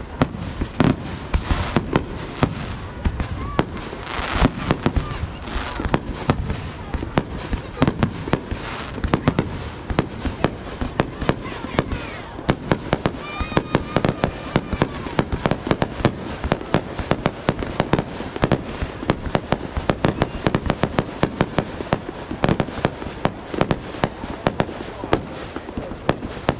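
Rockets whistle and hiss as they shoot upward.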